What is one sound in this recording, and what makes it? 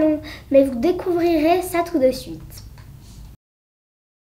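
A young girl speaks into a microphone.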